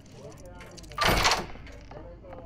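A door lock clicks loudly.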